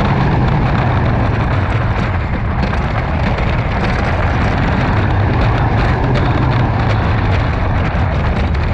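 A wooden roller coaster car rumbles and clatters loudly along its track.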